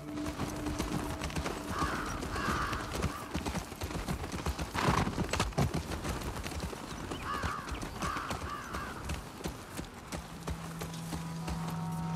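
A horse's hooves thud on soft ground.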